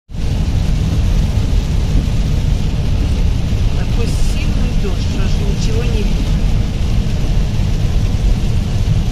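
Windscreen wipers swish back and forth.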